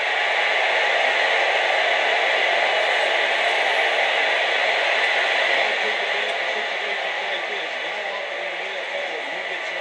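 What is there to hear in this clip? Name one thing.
A stadium crowd roars steadily through a television's speakers.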